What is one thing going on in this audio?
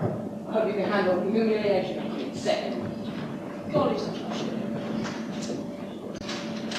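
Teenage boys speak lines loudly on a stage, heard from across a hall.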